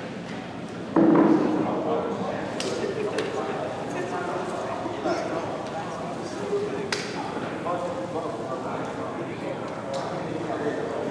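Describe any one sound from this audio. Young men talk and chatter in a large echoing hall.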